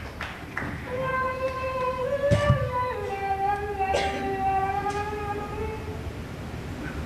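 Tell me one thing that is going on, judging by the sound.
A man hums a long, wavering note.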